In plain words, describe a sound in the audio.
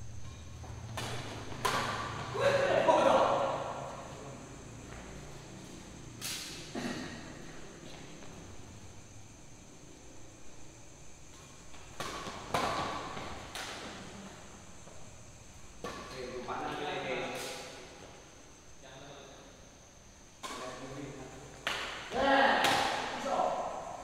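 Badminton rackets hit a shuttlecock with sharp pops in an echoing hall.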